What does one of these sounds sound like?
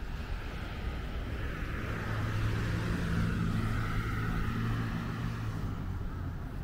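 A car drives past on a nearby road, rising and then fading.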